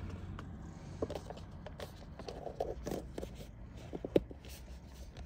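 A plastic lid clicks and snaps onto a cup.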